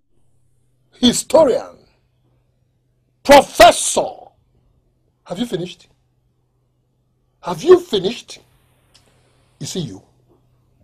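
A man speaks angrily and close by, in short bursts.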